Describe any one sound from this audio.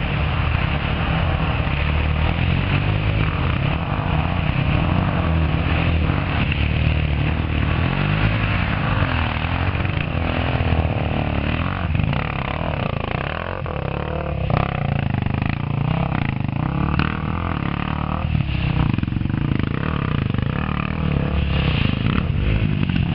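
Dirt bike engines rev and roar nearby, rising and falling in pitch.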